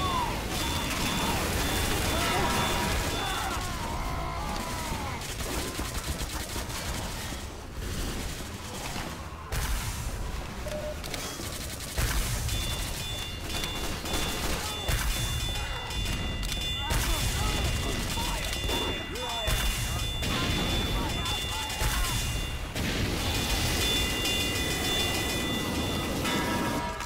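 A flamethrower roars in long bursts.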